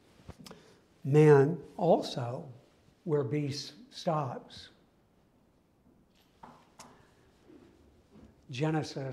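A middle-aged man speaks calmly in a room with slight echo, pausing between phrases.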